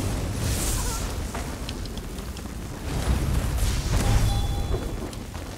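Lightning crackles and booms in loud bursts.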